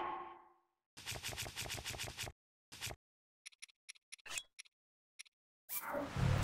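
Menu clicks tick rapidly.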